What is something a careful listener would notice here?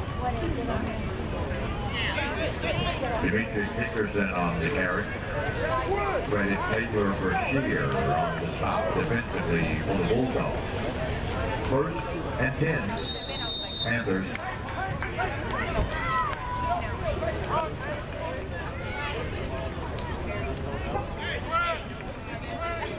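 A crowd of men and children talk and shout outdoors.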